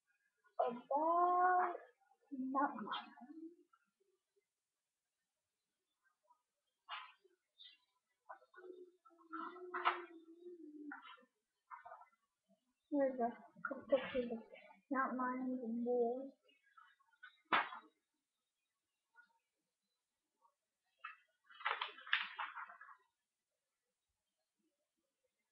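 Paper sheets rustle as they are turned.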